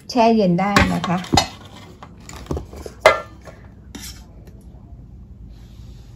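A plastic cup is set down on a metal tray.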